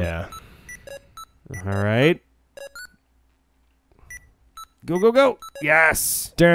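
Short electronic game bleeps and chirps sound in quick bursts.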